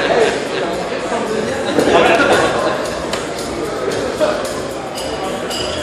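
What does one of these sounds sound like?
A crowd of people chatter all around in a large echoing hall.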